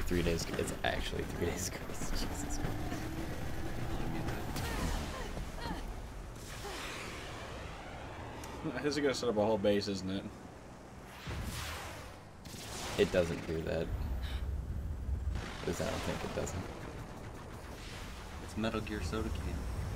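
A rocket thruster roars and hisses.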